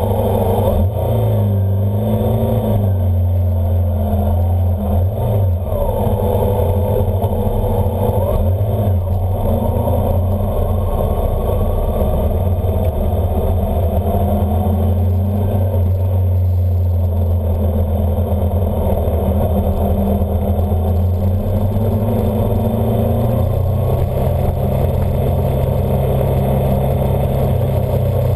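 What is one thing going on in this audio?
A motorcycle engine hums steadily up close, rising and falling in pitch as it shifts gears.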